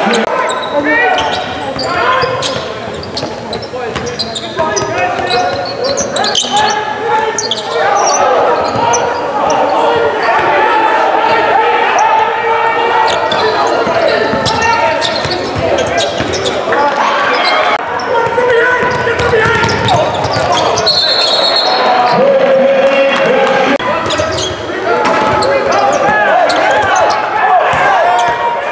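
Young men shout and call out to one another across the court.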